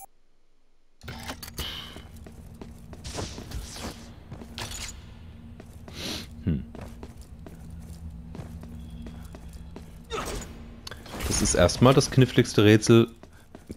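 A game character's footsteps clank on metal floors.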